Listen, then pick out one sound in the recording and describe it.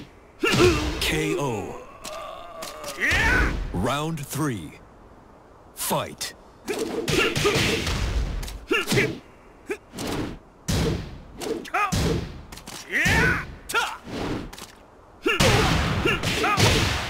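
Punches and kicks land with heavy thuds and cracks.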